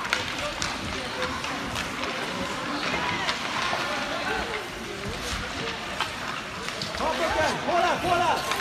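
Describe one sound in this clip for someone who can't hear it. Skates scrape across the ice in an echoing hall.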